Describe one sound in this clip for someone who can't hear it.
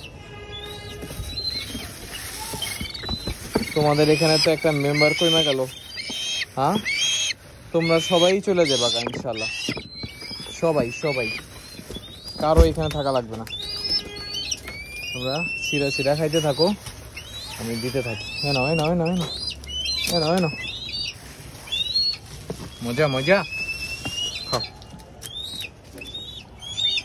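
Small birds chirp in high, rapid calls.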